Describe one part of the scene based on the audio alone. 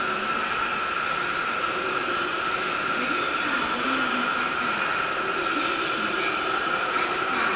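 A train rolls steadily along the tracks with a constant rumble and whine.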